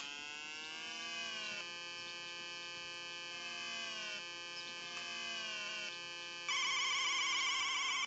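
Electronic game music plays with bleeping chiptune notes.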